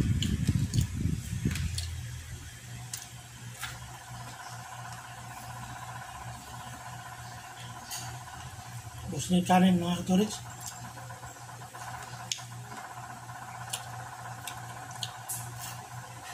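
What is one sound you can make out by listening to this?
A man chews crunchy food.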